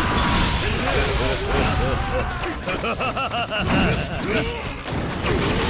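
Swords slash and clang in rapid succession.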